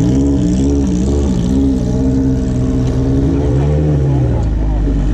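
A motorcycle engine idles close by, rising and falling in pitch.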